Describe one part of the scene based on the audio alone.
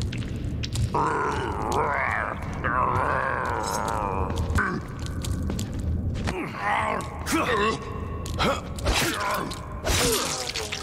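A creature groans and snarls close by.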